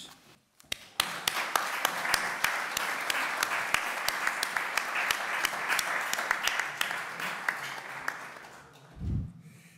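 Many hands clap in applause.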